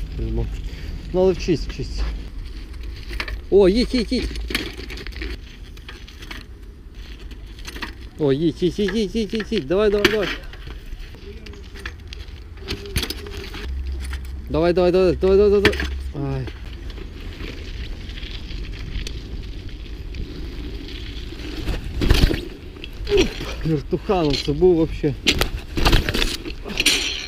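Bicycle tyres roll and rattle over snowy paving.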